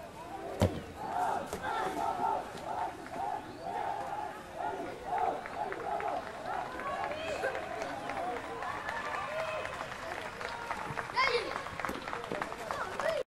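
Children shout while playing outdoors.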